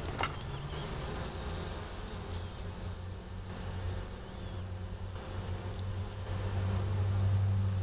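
Fabric rustles close against the microphone.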